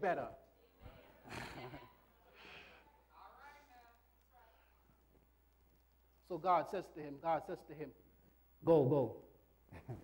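A man preaches with animation into a microphone in an echoing hall, pausing between phrases.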